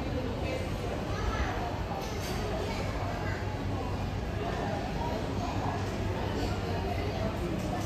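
A crowd of people murmurs indistinctly in a large echoing hall.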